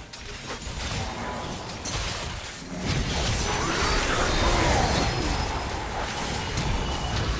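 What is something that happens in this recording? Spells and weapon hits crackle and burst in a fast fight.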